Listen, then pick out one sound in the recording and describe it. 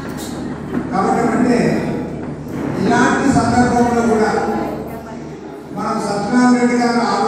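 A man speaks with animation into a microphone over a loudspeaker in an echoing hall.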